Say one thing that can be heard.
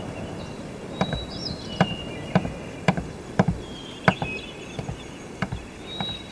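Footsteps knock on a wooden deck.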